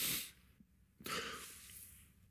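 A man sobs and sniffles close by.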